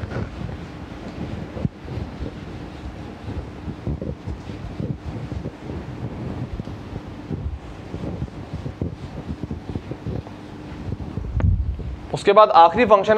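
A felt eraser rubs and swishes across a whiteboard.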